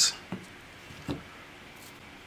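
A hand sets down on a ruler with a soft knock.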